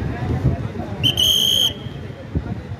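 A whistle blows one sharp blast.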